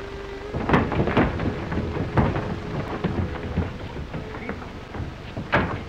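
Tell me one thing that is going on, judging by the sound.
Men scuffle and grunt in a struggle.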